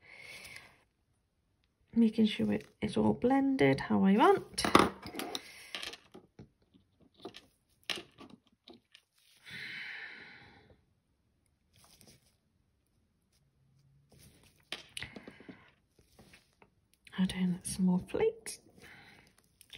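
A small metal tool taps and scrapes lightly on a hard nail tip.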